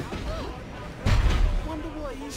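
A body lands on the ground with a heavy thud.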